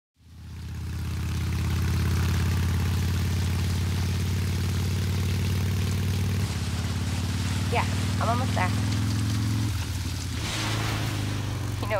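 Rain hisses down steadily.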